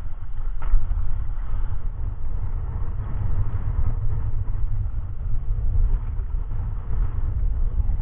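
A fishing net rustles as it is handled.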